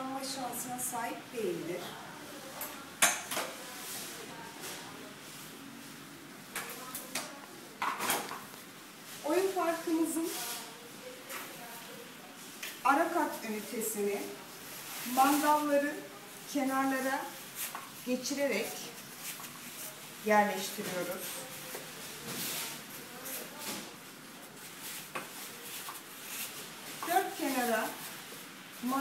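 A woman speaks calmly and explains close by.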